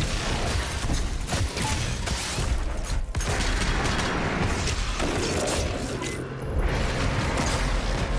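Fiery blasts burst and crackle.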